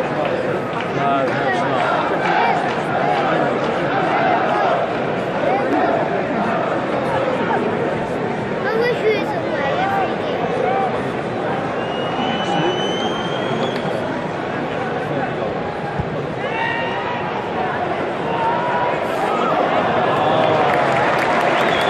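A large stadium crowd chants and sings loudly and steadily.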